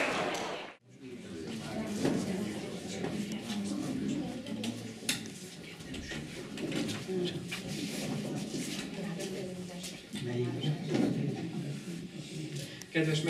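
A woman speaks calmly in an echoing room.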